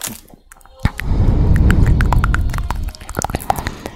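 Fingers rub across a microphone with a deep muffled rumble.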